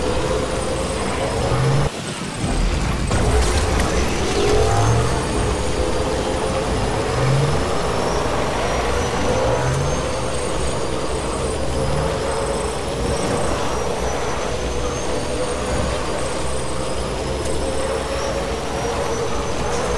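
An electric motorcycle whines as it rides along a road.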